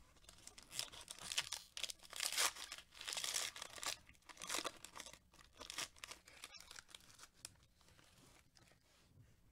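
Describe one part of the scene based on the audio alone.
A foil wrapper crinkles and tears loudly as gloved hands rip it open.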